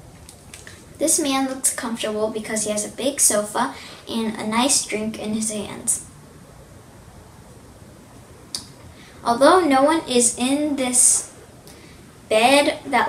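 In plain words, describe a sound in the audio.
A young girl speaks calmly and close by.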